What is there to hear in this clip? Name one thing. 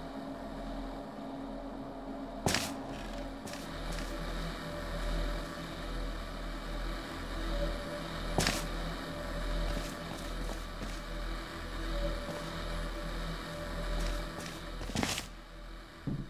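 A low mechanical hum drones steadily and then dies away.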